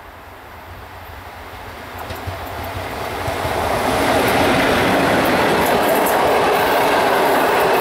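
A train approaches and rushes past with a loud, rising roar.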